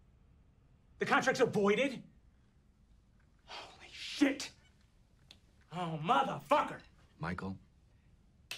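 A man speaks tensely.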